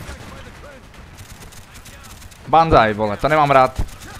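A machine gun fires in short bursts.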